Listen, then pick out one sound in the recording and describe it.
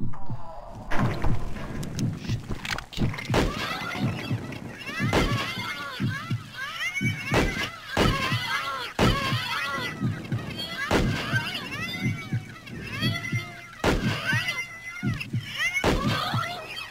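A pistol fires single shots.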